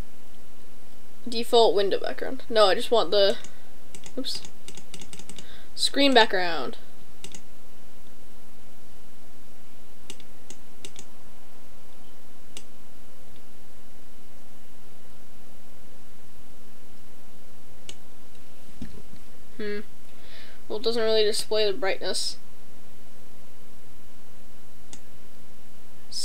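Mouse buttons click softly.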